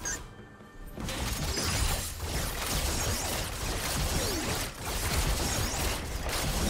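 Magic spells whoosh and blast in rapid succession.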